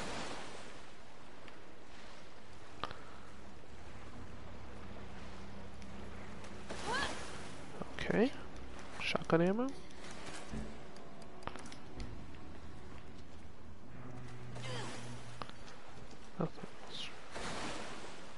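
Feet splash and wade through shallow water.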